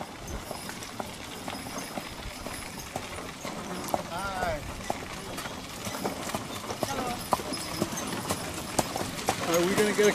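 Wooden wagon wheels creak and rattle.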